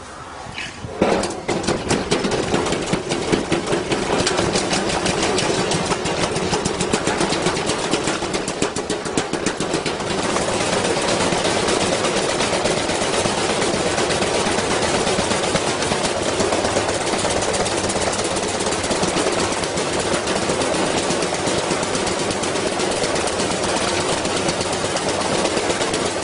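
A washing machine spins fast outdoors with a loud, rattling roar.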